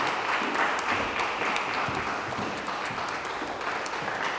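Footsteps tap across a wooden stage.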